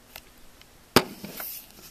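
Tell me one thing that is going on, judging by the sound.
A hand bumps and rubs against a microphone close up.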